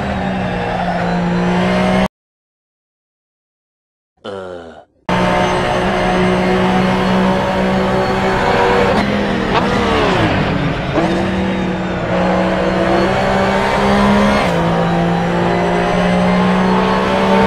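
A racing car engine roars at high revs, with its pitch dropping sharply once as it slows for a corner.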